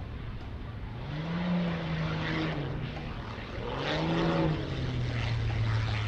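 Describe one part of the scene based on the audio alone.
A propeller plane's engine roars loudly in two quick surges as it swoops close by.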